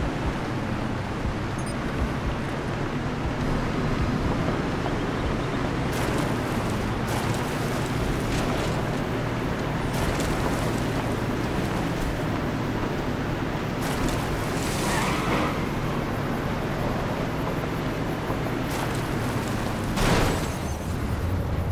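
Tyres rumble over dirt and gravel.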